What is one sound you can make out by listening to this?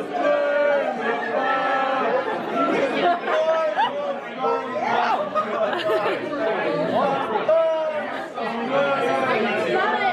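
A young man shouts and laughs excitedly close by.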